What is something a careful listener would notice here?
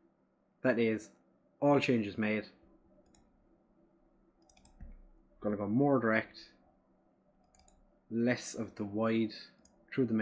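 A young man talks calmly and closely into a microphone, in short bursts with pauses.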